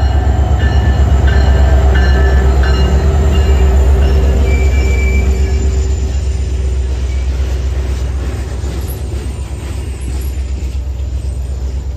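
Train wheels clatter and squeal on the rails as the cars roll past.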